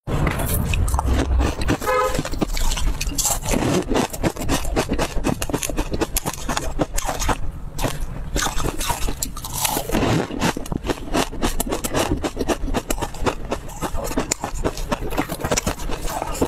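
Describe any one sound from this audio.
Crumbly food rustles as fingers pick at it.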